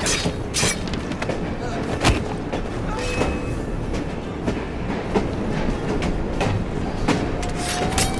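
Heavy blows and thuds land in a fight.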